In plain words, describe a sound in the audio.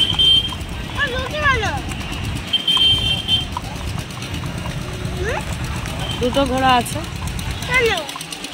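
Horses' hooves clop on a paved road.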